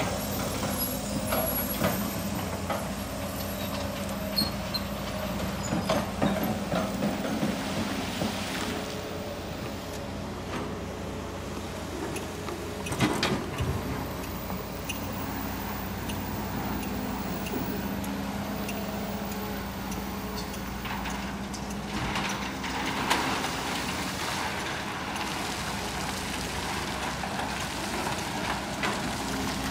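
Excavator engines rumble steadily.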